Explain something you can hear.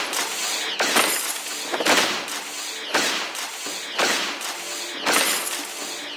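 Fighting sound effects crash and whoosh in repeated bursts, about once a second.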